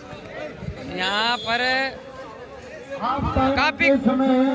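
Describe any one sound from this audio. A man shouts loudly through a loudspeaker.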